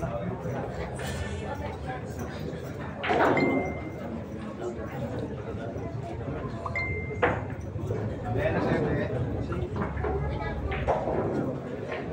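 A crowd of people chatter in the background of a large room.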